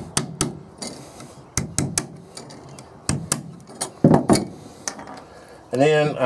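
A metal tool scrapes and taps on a metal jar lid.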